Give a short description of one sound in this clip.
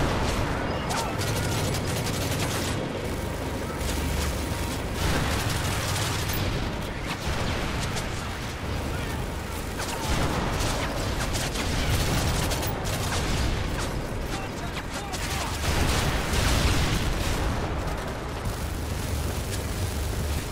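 Gunfire and explosions rumble and crack throughout a battle.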